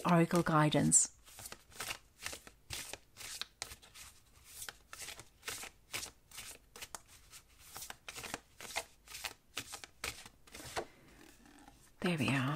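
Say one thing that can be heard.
Playing cards riffle and snap quickly as they are shuffled by hand.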